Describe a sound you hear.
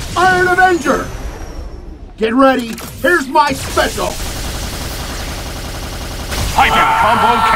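Energy blasts whoosh and crackle in a rapid flurry.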